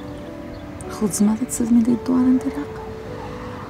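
A woman speaks softly and gently, close by.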